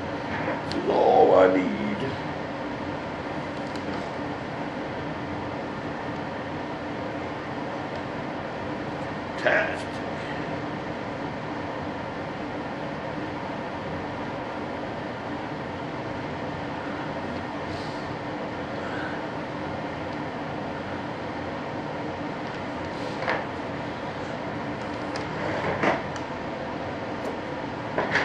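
Small tools scrape and tap against a hard surface now and then.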